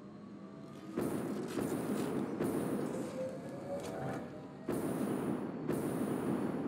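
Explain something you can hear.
Machines hum and rumble loudly nearby.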